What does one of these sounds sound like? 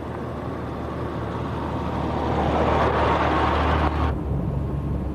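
Tyres crunch over gravel, loudest as the truck passes.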